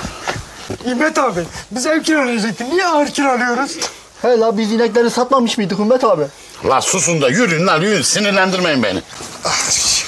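Several men talk with animation close by.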